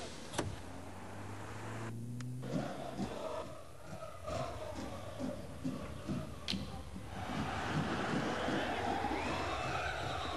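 A car engine hums as a car drives through a narrow street.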